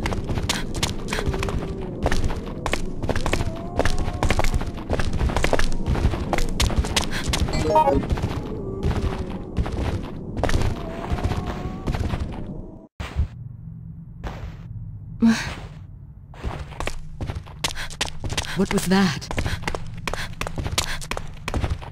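Footsteps clatter quickly on hard stone stairs.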